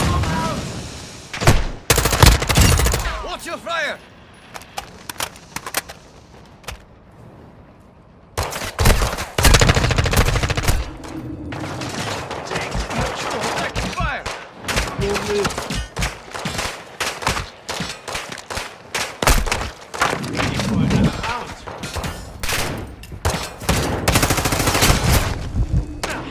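Gunfire bursts out in loud, sharp volleys.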